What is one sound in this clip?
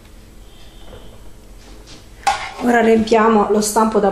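A metal baking pan is set down on a counter with a light knock.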